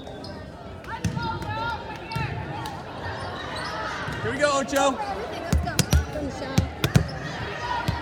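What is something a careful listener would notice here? A volleyball smacks off hands and arms in a large echoing gym.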